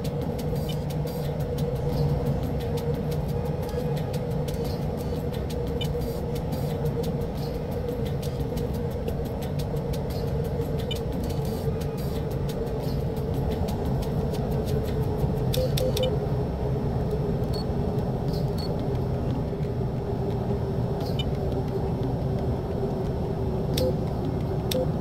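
A jet engine roars steadily from inside a cockpit.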